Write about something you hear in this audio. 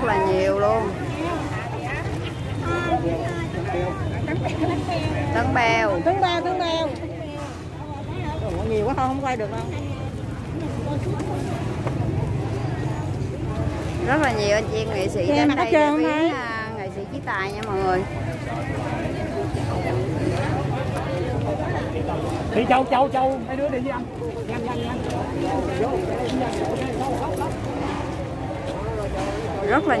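A crowd of men and women talks and murmurs close by outdoors.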